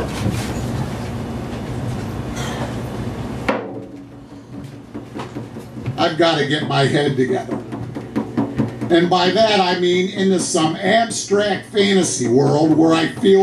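A hand drum is struck in a steady beat.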